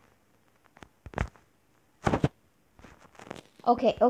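A block is set down with a short knock.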